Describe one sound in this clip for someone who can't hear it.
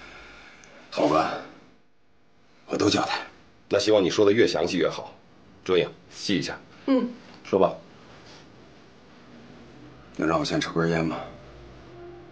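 A man speaks in a low, pleading voice close by.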